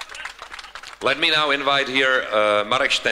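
A man speaks loudly and clearly into a microphone.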